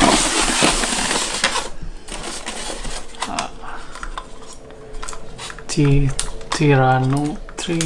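Plastic toy parts clatter in a plastic tray.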